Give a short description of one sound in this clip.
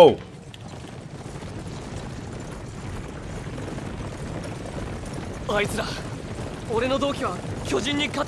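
Many horses gallop with a low rumble of hooves.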